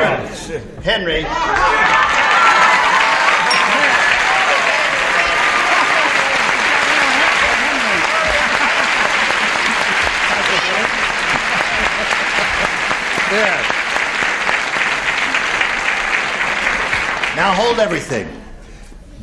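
A studio audience applauds and cheers loudly.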